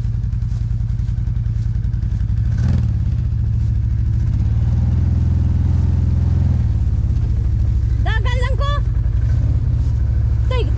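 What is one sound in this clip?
An off-road vehicle's engine rumbles steadily and swells louder for a few seconds as the vehicle drives on.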